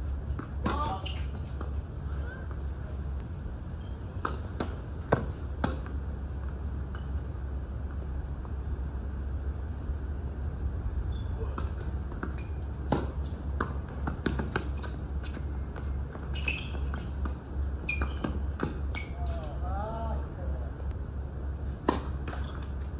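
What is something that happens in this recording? Tennis rackets strike a ball with sharp pops, back and forth.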